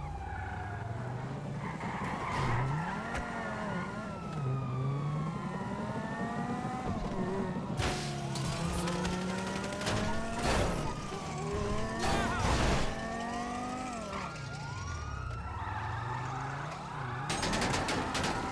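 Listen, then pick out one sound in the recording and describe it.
A car engine revs and roars as the car speeds away.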